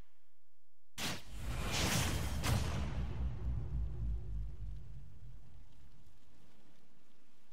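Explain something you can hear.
A deep booming hit strikes and slowly fades.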